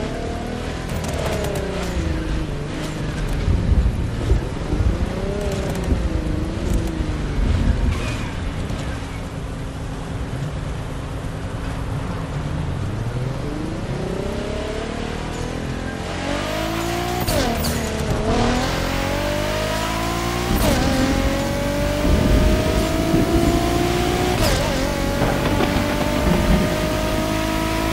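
A sports car engine revs and roars, rising in pitch as it shifts up through the gears.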